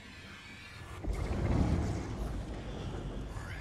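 Glass shatters with a loud crash and a deep rumble.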